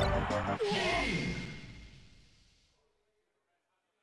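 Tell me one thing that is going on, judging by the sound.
A video game blares a loud burst of end-of-match sound, then fades out.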